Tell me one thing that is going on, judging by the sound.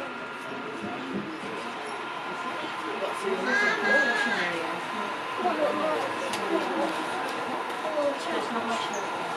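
A model train rumbles softly along its track.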